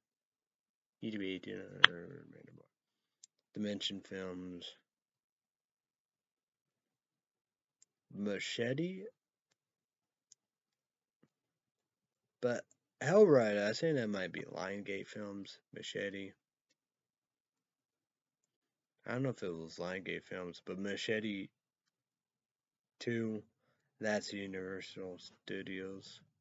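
A young man talks calmly close to the microphone, in short bursts with pauses.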